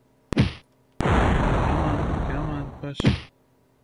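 A magic blast crackles and hisses.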